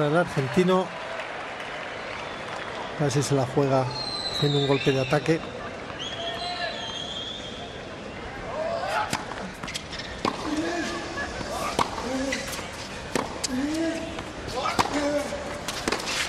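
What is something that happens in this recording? A tennis ball is struck hard with a racket, again and again.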